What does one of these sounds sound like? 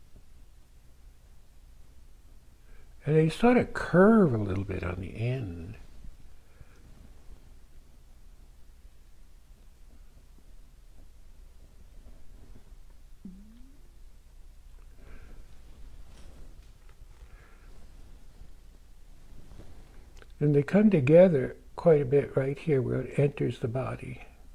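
A brush dabs and strokes softly on canvas.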